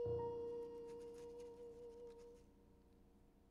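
A piano chord rings out and fades away.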